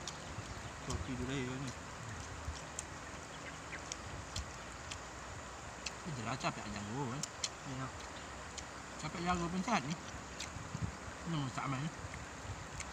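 Two young men talk casually outdoors, close by.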